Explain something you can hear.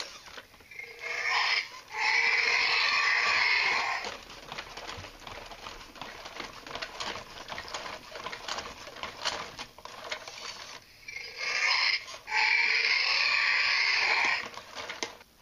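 A toy robot dinosaur roars loudly.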